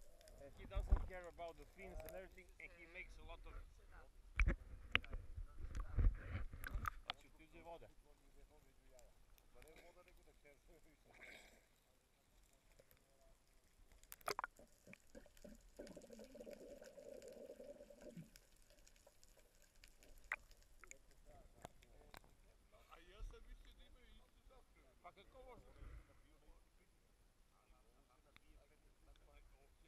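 Water splashes and sloshes close by, sometimes muffled underwater.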